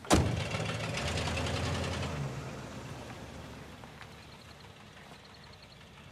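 A car engine roars past at speed and fades into the distance.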